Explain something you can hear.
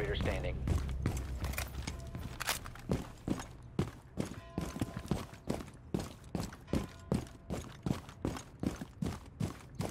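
Footsteps run quickly and evenly over hard ground.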